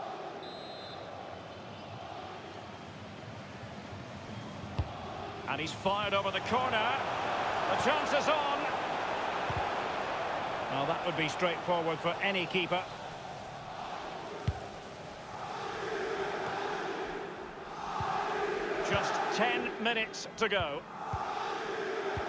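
A large stadium crowd roars and chants steadily throughout.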